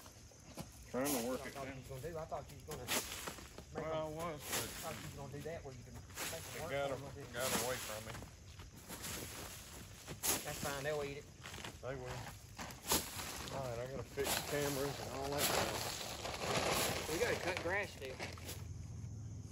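A man talks with animation nearby.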